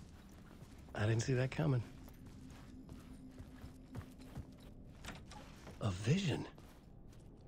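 A man speaks quietly to himself.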